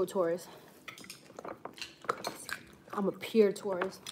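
Chopsticks clink against a bowl.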